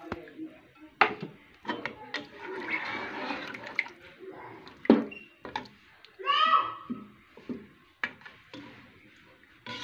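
A spoon scrapes and knocks against a metal pot while stirring a thick sauce.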